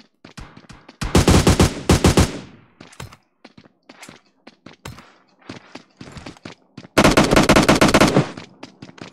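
Rapid gunshots fire in short bursts.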